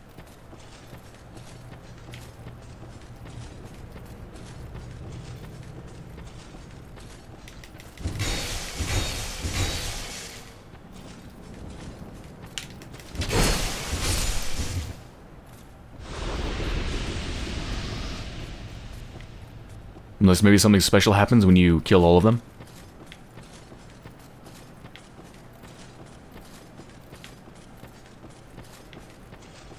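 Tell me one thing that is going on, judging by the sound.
Armoured footsteps run quickly over soft ground.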